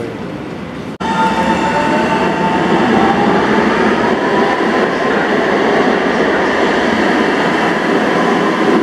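A light rail train pulls away with a rising electric whine and a rumble that echoes loudly.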